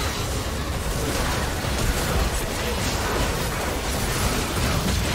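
Magic blasts crackle and boom in a fast, chaotic fight.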